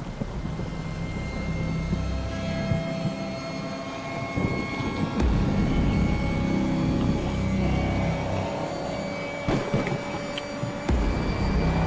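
Rain patters steadily against a window.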